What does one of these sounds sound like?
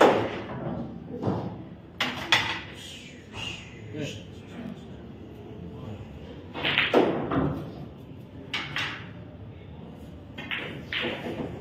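Pool balls knock against the table cushions.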